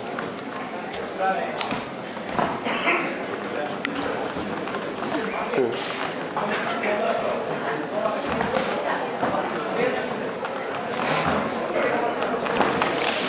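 Punches thud against bodies and gloves.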